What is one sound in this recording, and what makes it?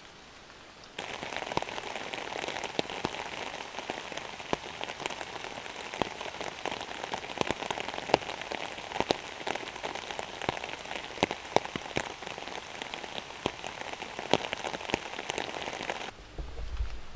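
A man whispers softly close by.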